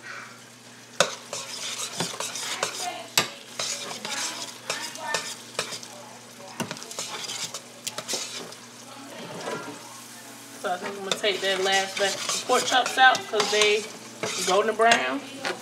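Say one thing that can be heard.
A metal spoon scrapes and stirs thick macaroni in a metal pot.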